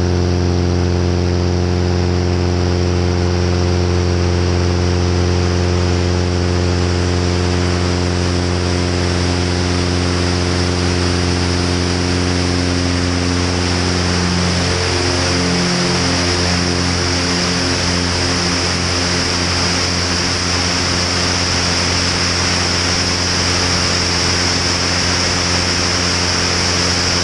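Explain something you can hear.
Wind rushes past loudly as the plane speeds along.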